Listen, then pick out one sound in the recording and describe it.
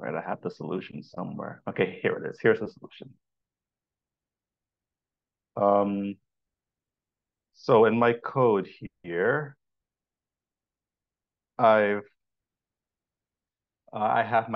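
A man speaks calmly through a microphone, in short bursts with pauses.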